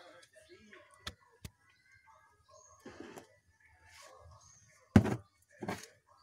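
Books knock and shuffle against a wooden shelf.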